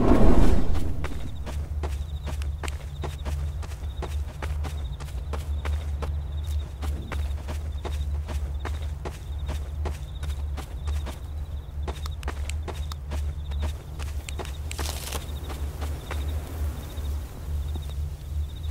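Footsteps tap quickly and steadily on wooden boards.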